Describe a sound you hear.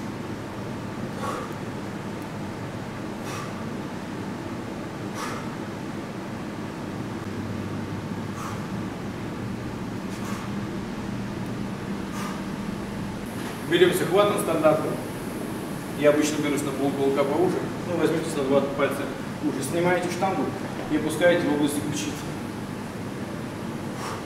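A barbell clinks softly as it is lifted and lowered.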